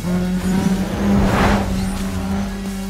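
A car smashes into objects with a loud crash.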